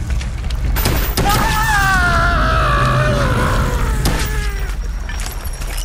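A pistol fires several sharp shots in an echoing tunnel.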